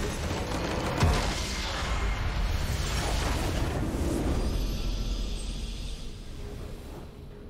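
A game structure blows up with a deep rumbling blast.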